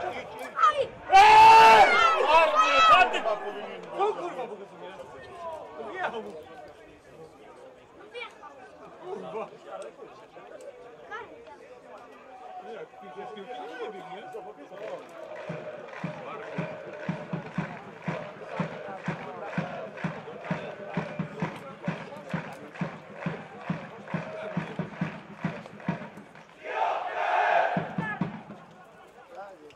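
Fans in the stands chant and cheer in the distance outdoors.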